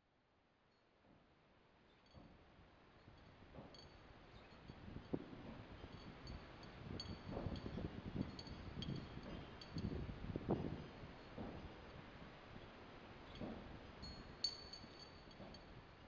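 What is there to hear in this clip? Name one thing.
Stones knock and scrape against ice.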